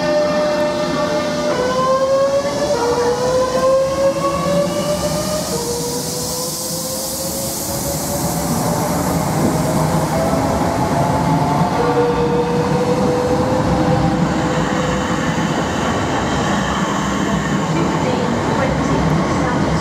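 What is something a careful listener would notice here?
Train wheels clatter over the rail joints.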